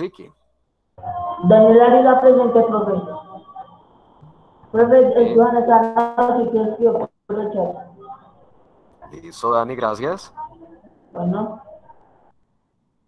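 A teenage boy speaks steadily over an online call.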